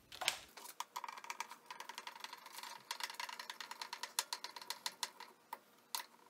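A screwdriver clicks as screws are turned.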